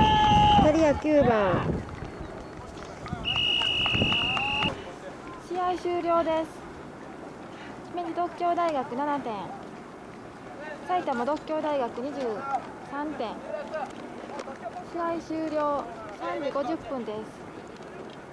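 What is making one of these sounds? Young men shout loudly together outdoors.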